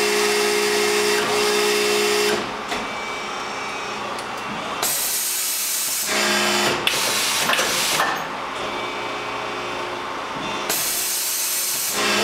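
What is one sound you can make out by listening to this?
A machine hums and hisses loudly as it runs in cycles.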